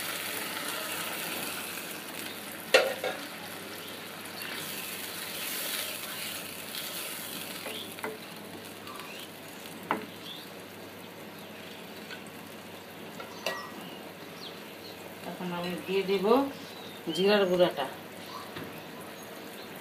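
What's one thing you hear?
A curry simmers and bubbles softly in a pan.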